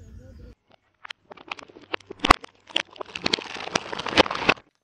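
A car tyre rolls over eggs and a plastic carton, crushing them with crackling and squelching.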